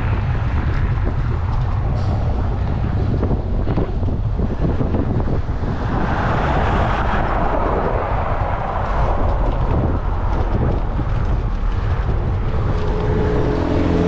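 Bicycle tyres rumble over rough, cracked pavement.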